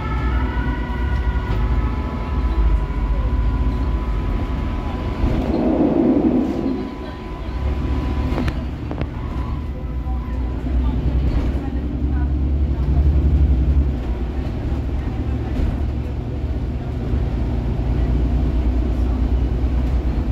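A natural-gas articulated city bus engine drones low, heard from inside as the bus drives.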